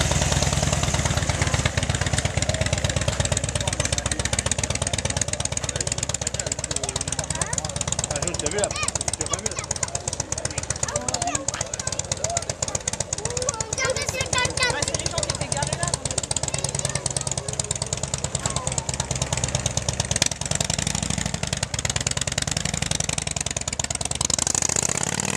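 A motorcycle engine idles with a deep, loud rumble.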